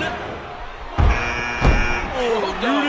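A heavy body slams down onto a wrestling mat with a thud.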